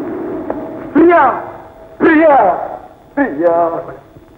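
A woman sings in long, wavering notes.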